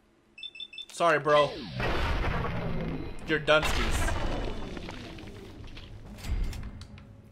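Gunshots fire in rapid bursts and echo.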